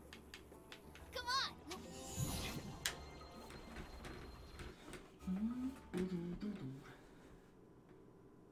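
Video game sound effects chime and whoosh.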